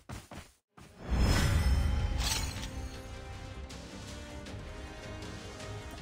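A triumphant game fanfare plays loudly.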